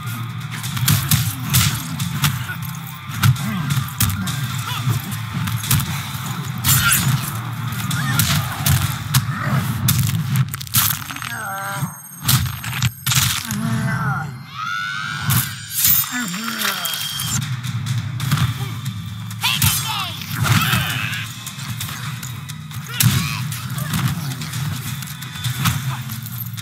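Heavy punches and kicks land with loud thuds and cracks.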